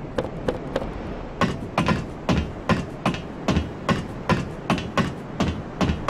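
Hands and feet clank on a metal ladder.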